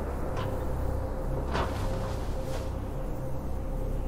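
A person drops from a height and lands on the floor with a thud.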